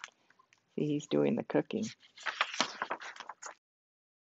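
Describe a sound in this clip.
A book page turns with a rustle.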